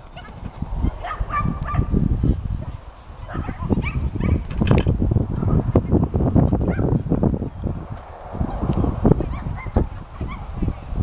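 A woman calls out commands to a dog at a distance.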